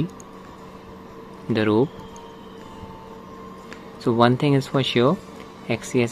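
Thumbs click the buttons of a handheld game console.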